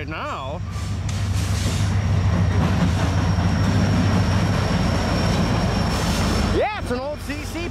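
A diesel locomotive rumbles loudly as it passes close by.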